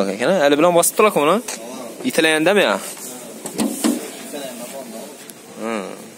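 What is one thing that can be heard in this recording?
A car bonnet latch clicks and the bonnet creaks open.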